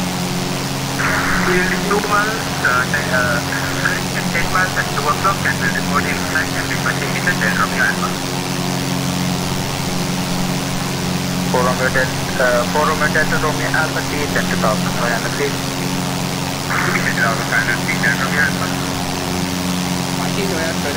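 A young man speaks calmly into a headset microphone.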